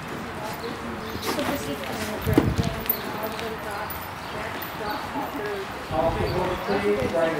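Horse hooves thud softly on dirt at a trot.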